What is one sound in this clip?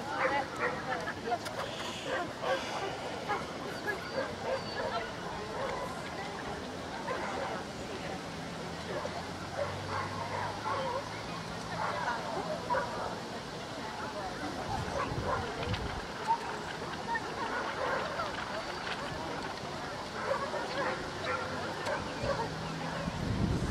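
A crowd of people chatters outdoors in the background.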